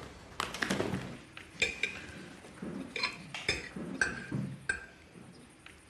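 Cutlery clinks against plates.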